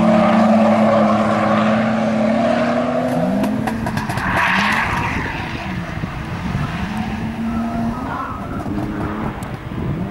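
Tyres screech as a car slides around a bend.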